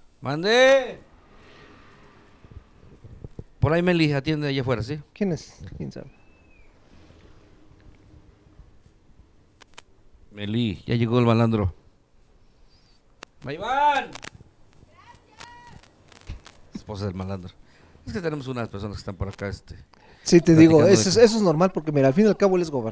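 A second man speaks calmly into a microphone, close by.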